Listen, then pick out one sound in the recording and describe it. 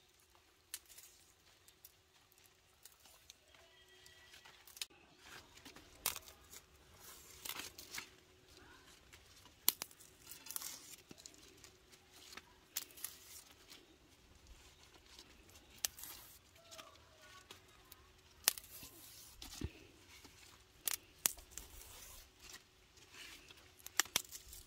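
Leaves rustle and crinkle in hands.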